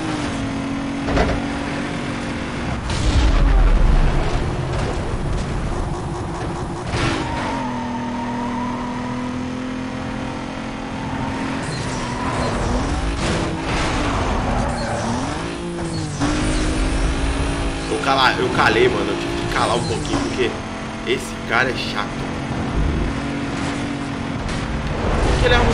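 A racing car engine roars steadily, shifting gears as it speeds up and slows down.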